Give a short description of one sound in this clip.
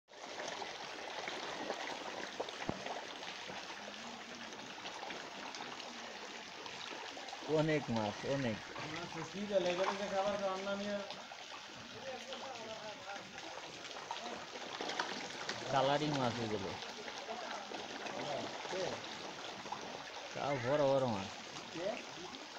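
Fish splash and slurp at the water's surface.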